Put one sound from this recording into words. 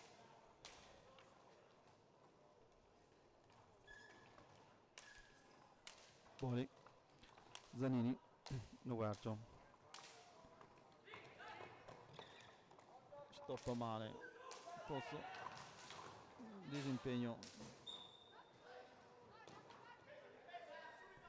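Hockey sticks click and clack against a ball on a hard floor.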